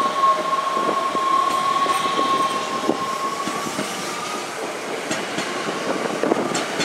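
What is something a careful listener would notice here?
An electric train's motor whines steadily.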